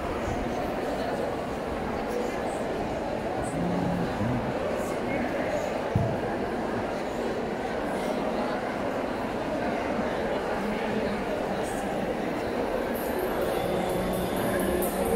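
A large crowd of elderly women and men chatter all at once in a big echoing hall.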